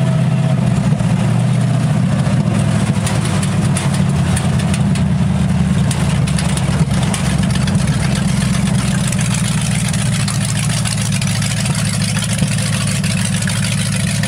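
The car body rattles and knocks over a rough road.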